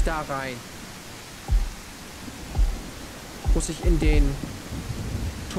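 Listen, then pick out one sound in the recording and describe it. A man speaks into a close microphone.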